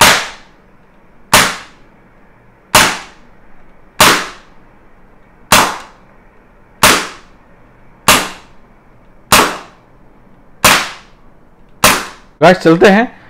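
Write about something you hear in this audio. An air pistol fires sharp shots at a steady pace, with a short ringing after each.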